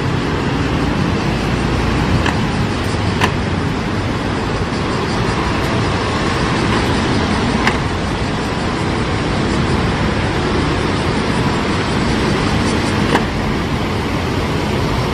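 City buses rumble past, their engines droning close by.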